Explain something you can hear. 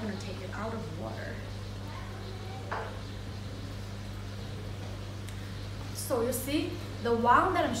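A young woman talks close by in a calm, friendly tone.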